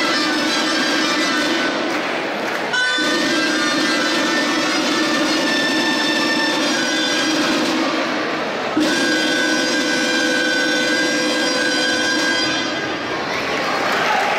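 A small band plays lively folk music.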